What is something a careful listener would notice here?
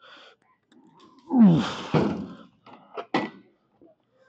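Weight plates clank on an exercise machine.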